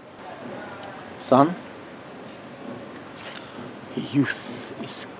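An elderly man speaks in a deep, firm voice.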